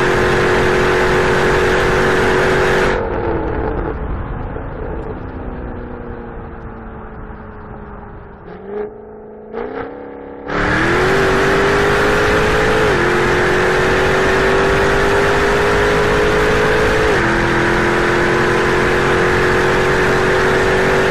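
A car engine roars loudly at high speed, quiets as the throttle eases off, then roars again under hard acceleration.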